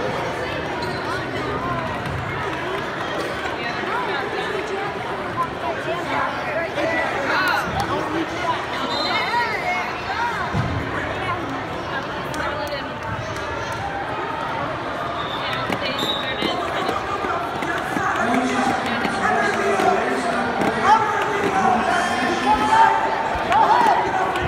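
A crowd of spectators chatters throughout a large echoing gym.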